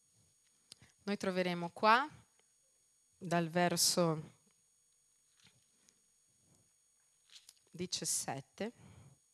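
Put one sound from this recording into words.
A woman sings slowly and softly into a microphone, heard through loudspeakers.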